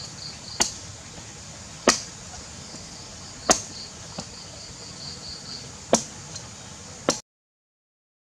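A machete chops into a green coconut with sharp thuds.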